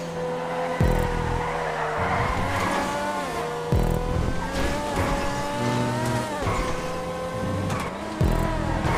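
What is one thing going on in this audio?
A sports car engine revs high and shifts gears as the car speeds along.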